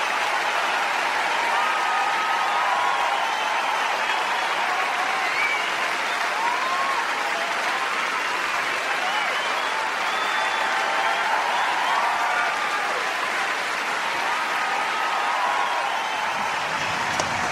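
A large crowd cheers and whistles loudly outdoors.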